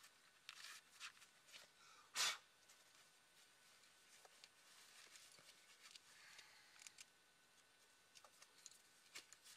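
Shoe straps rustle and scrape as a climbing shoe is pulled on and tightened.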